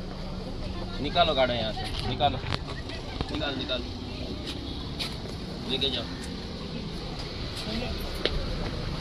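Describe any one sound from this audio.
Men talk loudly and excitedly nearby, outdoors.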